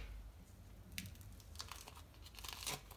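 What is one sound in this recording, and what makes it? Plastic wrap crinkles as it is peeled off a salami.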